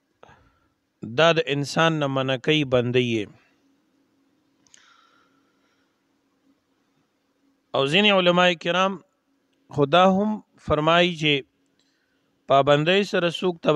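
A man recites in a slow, melodic voice, close to a microphone, with pauses between phrases.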